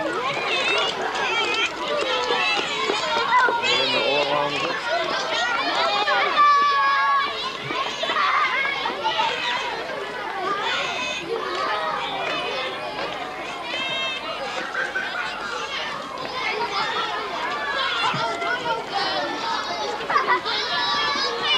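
A crowd of young children chatter and call out excitedly outdoors.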